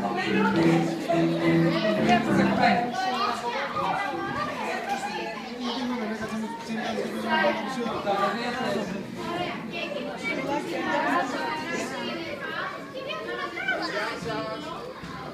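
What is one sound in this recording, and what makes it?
A woman talks nearby in an echoing room.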